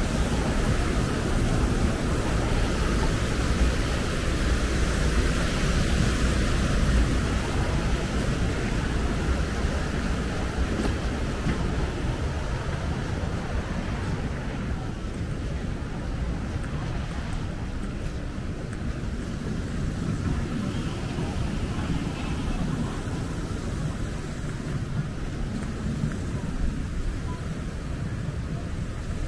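Wind blows steadily outdoors, rumbling low and gusting slightly.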